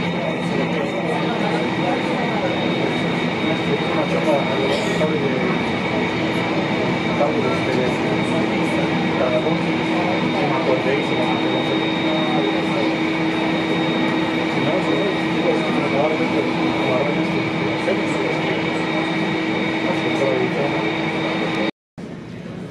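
A jet engine hums and whines steadily nearby.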